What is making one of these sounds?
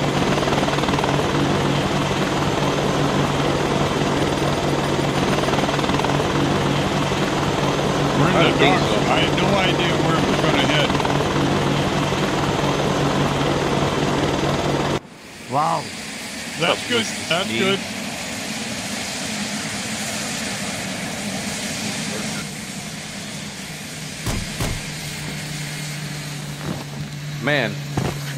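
A helicopter's rotor thumps and its engine whines steadily.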